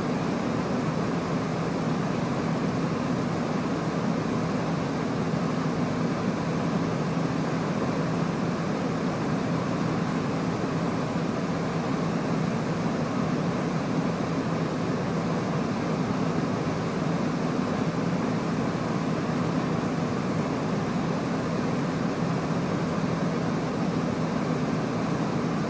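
A jet engine roars steadily inside a cockpit in flight.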